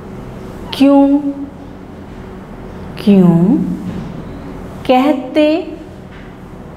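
A woman speaks clearly and deliberately into a close microphone, in short phrases with pauses.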